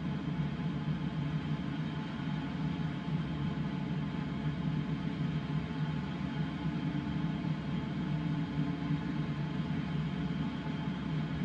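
Wind rushes steadily past a glider's canopy.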